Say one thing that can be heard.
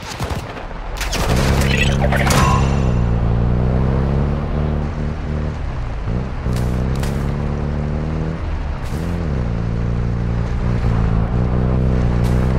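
A vehicle engine starts and revs, then drones steadily while driving.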